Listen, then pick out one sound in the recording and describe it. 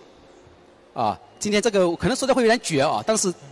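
A man speaks into a microphone over loudspeakers in a large echoing hall.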